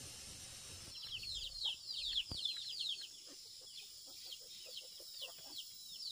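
Chickens cheep with quick, high falling chirps.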